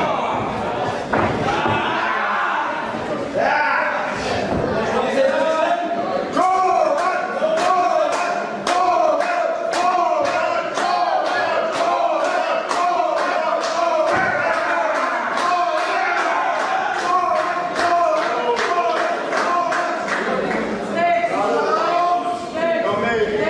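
A crowd of spectators chants and cheers loudly in an echoing hall.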